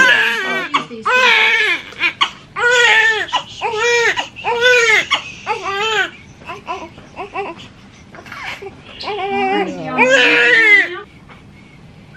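A newborn baby cries loudly in short, wailing bursts close by.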